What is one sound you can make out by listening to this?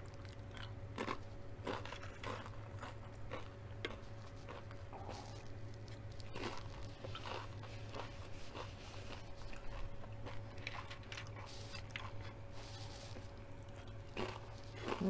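Crispy chips crunch and crackle as they are bitten.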